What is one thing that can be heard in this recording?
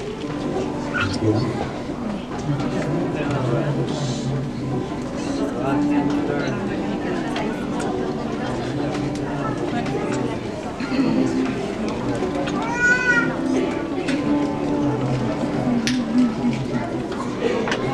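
A children's band plays instruments together in a hall.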